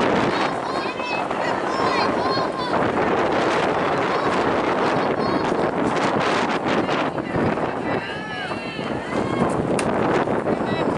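Wind blows steadily across an open outdoor field.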